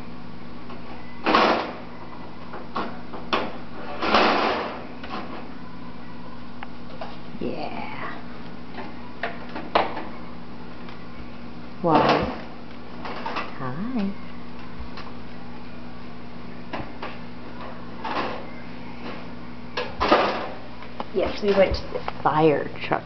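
Metal racks rattle and clatter as a toddler handles them.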